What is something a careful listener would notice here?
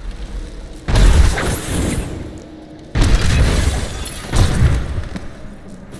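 Wooden objects smash and break apart with loud crashes.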